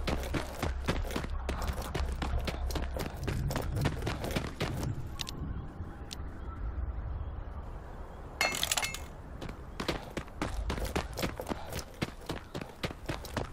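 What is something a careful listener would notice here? Footsteps crunch steadily on a gravelly road.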